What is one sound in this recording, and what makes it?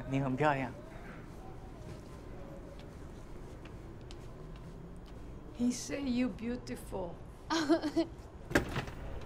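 A man and a woman talk.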